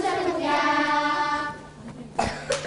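Children sing together.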